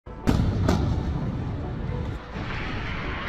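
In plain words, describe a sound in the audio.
A loud explosion booms and rumbles into the distance.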